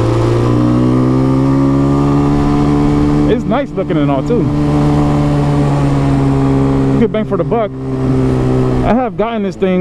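A motorcycle engine drones steadily close by.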